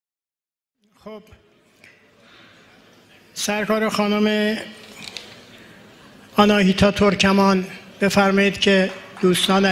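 An elderly man recites slowly and expressively through a microphone.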